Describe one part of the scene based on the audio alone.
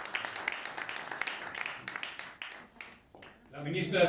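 A small audience claps their hands.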